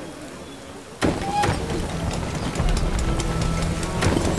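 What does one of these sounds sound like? A steam train puffs and rumbles as it pulls in.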